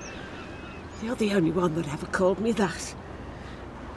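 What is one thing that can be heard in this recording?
An elderly woman laughs and speaks with animation, close by.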